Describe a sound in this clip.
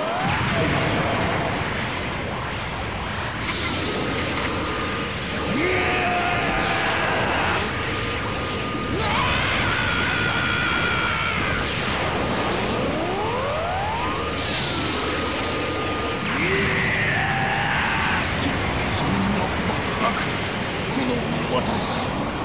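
A powerful energy blast roars and crackles.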